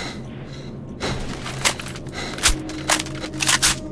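A rifle's metal parts click and rattle as it is handled.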